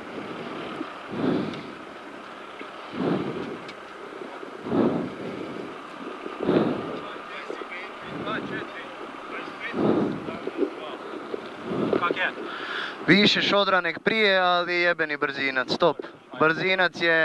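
A car engine revs loudly, rising and falling in pitch as the car speeds along.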